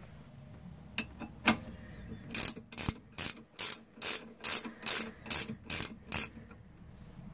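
A ratchet wrench clicks rapidly as it turns a bolt.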